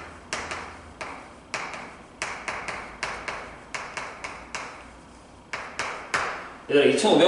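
Chalk taps and clicks sharply on a board.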